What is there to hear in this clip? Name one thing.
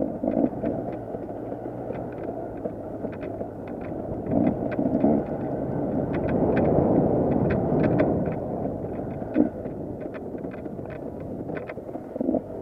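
A two-stroke enduro bike climbs a dirt trail under load.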